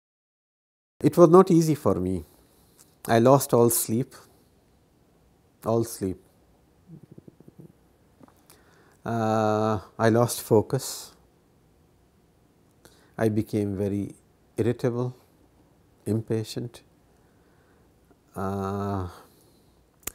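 A middle-aged man speaks calmly and thoughtfully close to a microphone, with pauses.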